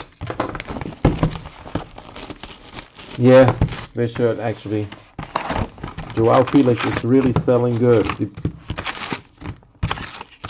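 Plastic wrappers crinkle and rustle as cards are handled.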